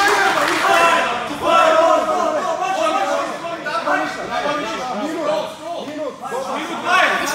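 Several men shout and call out nearby with animation.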